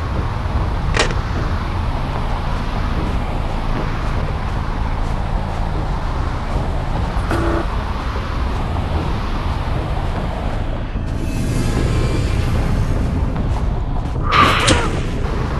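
Heavy footsteps tread steadily over soft ground.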